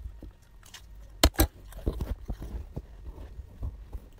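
A young woman chews and smacks her lips loudly close by.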